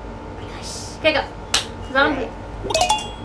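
A young boy speaks briefly and excitedly close by.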